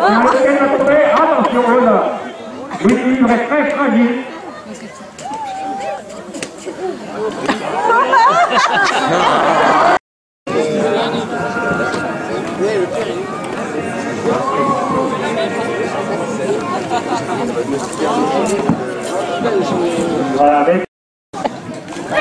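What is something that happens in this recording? A crowd of men shout and cheer outdoors.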